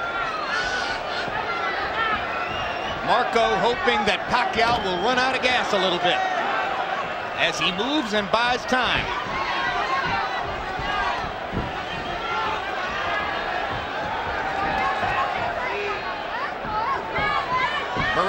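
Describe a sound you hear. A crowd in a large arena murmurs and cheers.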